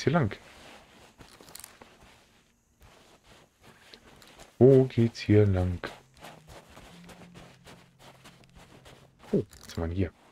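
Footsteps thud softly on grass and sand.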